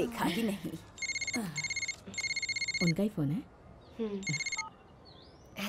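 A mobile phone rings with a repeating electronic tone.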